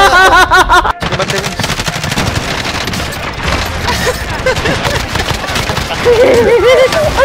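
A machine gun fires rapid bursts at close range.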